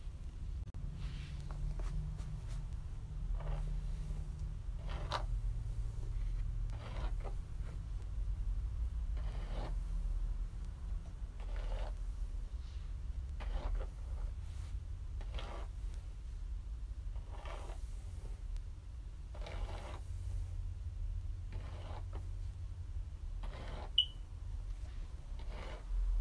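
A brush strokes softly through long hair again and again.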